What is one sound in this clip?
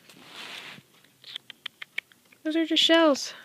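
A small rodent nibbles and gnaws on a treat with quick crunchy clicks.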